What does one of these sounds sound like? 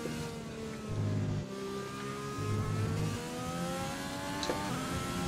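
A racing car engine whines and rises in pitch as it speeds up.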